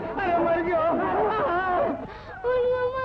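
Men talk excitedly together.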